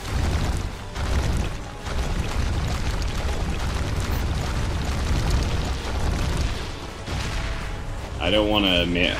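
Heavy explosions boom and rumble.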